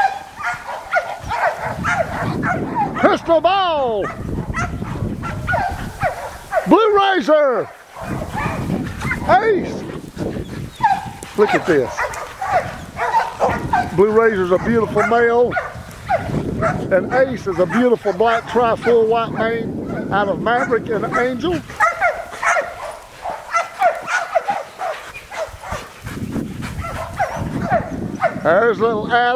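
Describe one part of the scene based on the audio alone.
Several dogs bark and yelp excitedly close by.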